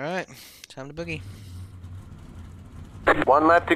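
A race car engine roars and revs up.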